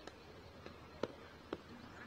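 A cricket bat strikes a ball with a sharp knock, heard outdoors.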